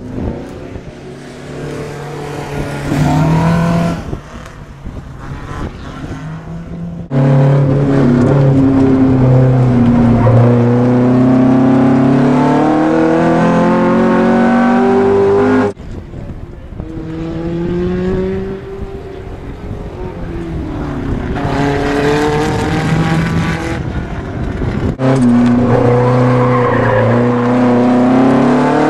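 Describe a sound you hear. A racing car engine roars loudly, revving up and down.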